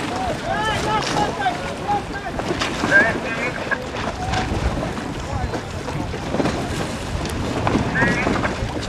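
Sails flap and rustle in the wind.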